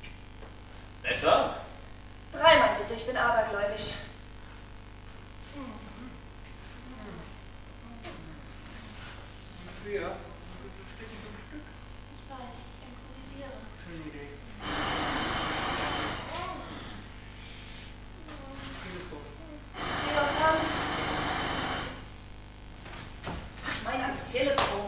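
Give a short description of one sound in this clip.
A young man speaks, heard from a distance in an echoing hall.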